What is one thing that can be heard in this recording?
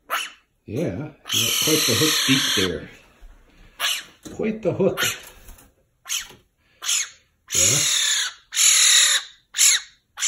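A magpie squawks with loud, harsh, rasping chatter in short bursts.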